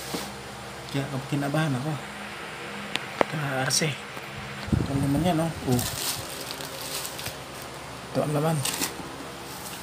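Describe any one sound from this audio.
A middle-aged man talks casually close to the microphone.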